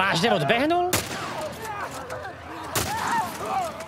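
Gunshots bang sharply.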